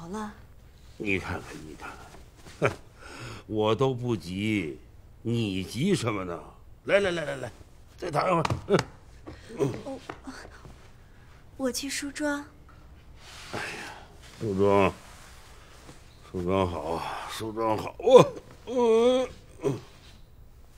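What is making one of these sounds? An elderly man talks drowsily and slowly, close by.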